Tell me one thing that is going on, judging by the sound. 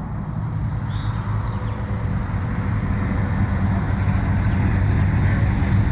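A car engine rumbles deeply and grows louder as the car rolls closer.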